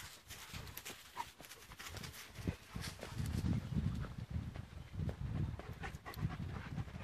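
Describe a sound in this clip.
Dogs' paws patter quickly on a dirt path.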